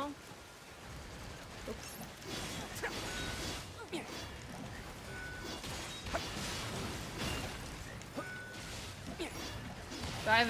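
Game swords clash and slash.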